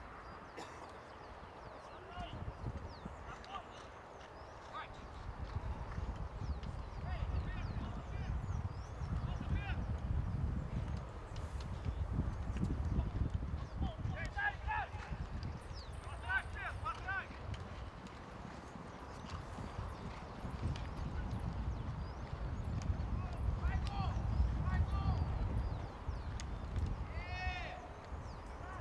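Horses gallop across grass with dull, distant hoofbeats.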